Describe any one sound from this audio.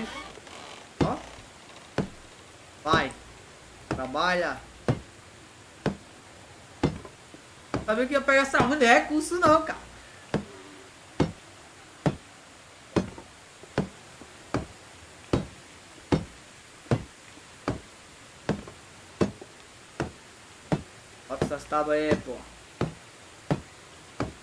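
A hammer knocks on wood at a steady pace.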